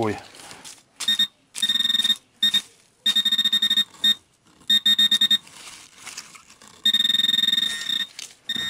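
A handheld pinpointer buzzes in rapid bursts.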